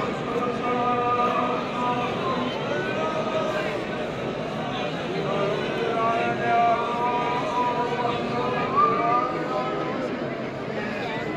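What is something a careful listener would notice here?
A large crowd of men prays aloud together outdoors.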